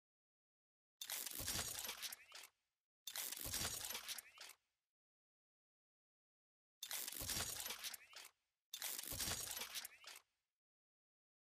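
A metallic clanking and whooshing effect plays in four short bursts.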